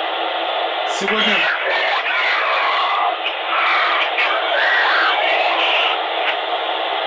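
Garbled voice fragments crackle through a handheld radio.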